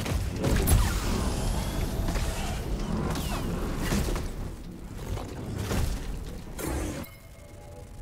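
Sparks crackle.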